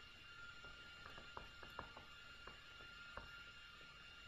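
A stylus taps and scratches on a tablet surface.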